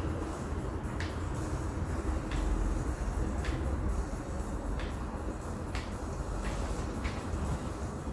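Short electronic menu clicks sound now and then from a television.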